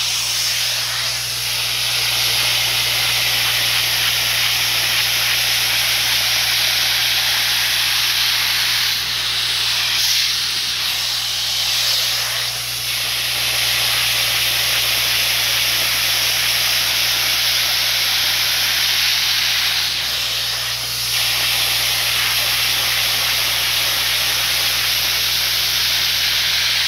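An upholstery cleaner's nozzle sucks and slurps water as it is drawn across the fabric.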